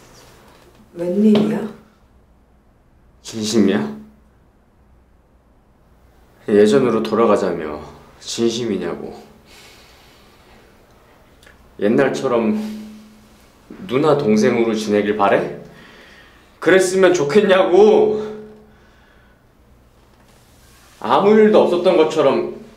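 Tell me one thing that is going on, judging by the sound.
A young woman speaks quietly and hesitantly nearby.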